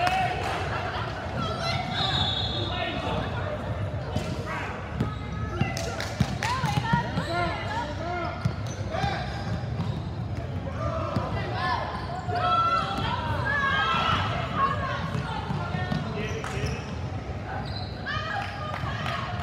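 Several people shout and cheer from close by.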